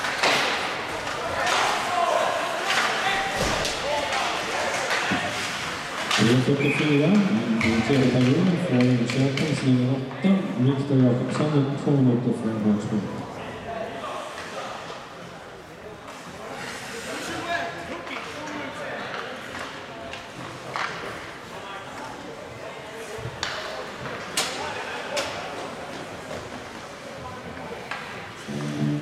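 Hockey sticks and pucks clack and knock against the ice.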